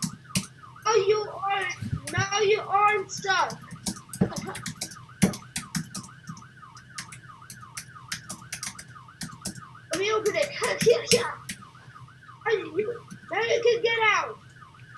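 An ambulance siren wails in a fast, steady warble.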